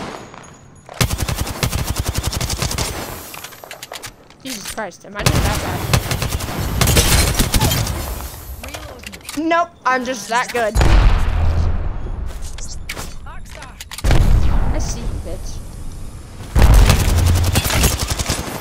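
Rapid gunfire rattles in bursts, close by.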